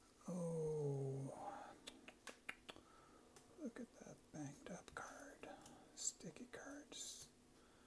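Stiff cards shuffle and flick against each other.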